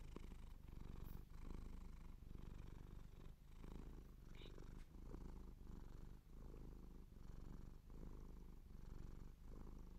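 A hand rubs against fabric with soft, rhythmic rustling.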